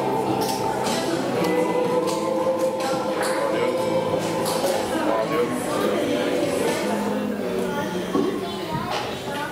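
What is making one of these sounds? A brass band plays a slow, sustained chord in an echoing hall.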